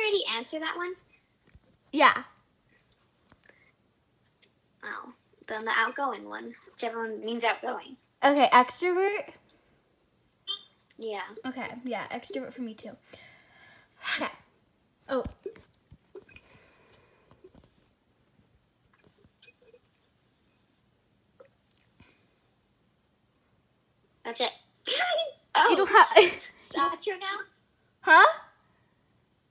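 A girl talks and laughs close by.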